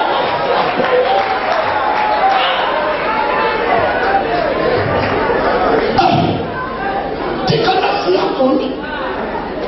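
A man preaches with animation into a microphone, heard through loudspeakers in a large echoing hall.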